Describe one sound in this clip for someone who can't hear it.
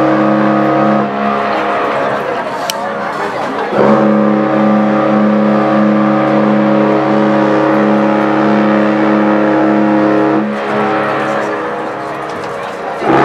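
A crowd outdoors murmurs and calls out.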